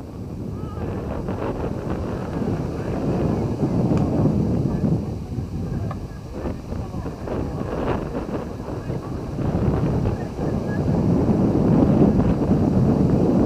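Wind blusters and rumbles across an open field.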